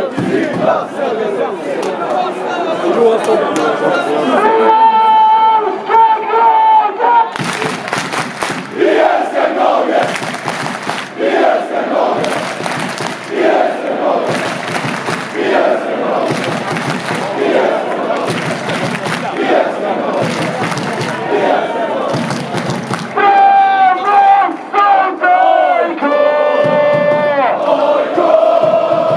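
A large stadium crowd chants and sings loudly outdoors.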